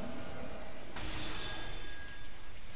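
A summoning chime rings out with a shimmering swell.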